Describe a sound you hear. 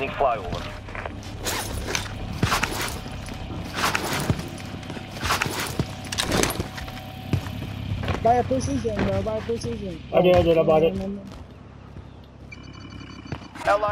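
Footsteps crunch on hard ground.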